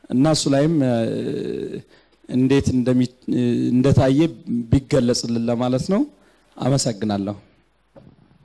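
A man speaks with animation into a microphone.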